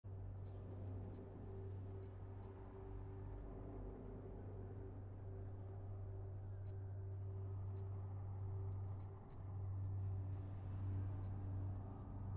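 Short electronic menu blips sound several times.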